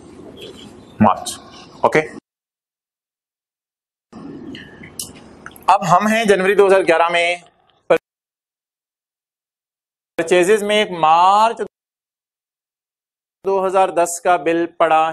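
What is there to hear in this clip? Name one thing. An adult man lectures with animation, close to a microphone.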